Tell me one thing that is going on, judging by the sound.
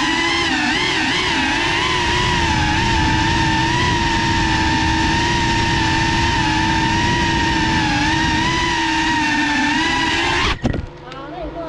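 A small drone's propellers whine loudly and steadily close by, then stop abruptly.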